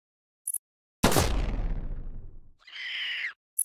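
A gunshot bangs and rings out slowly.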